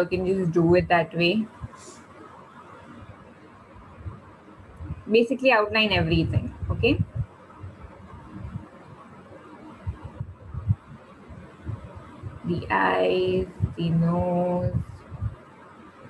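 A woman speaks calmly through a microphone, in short bursts.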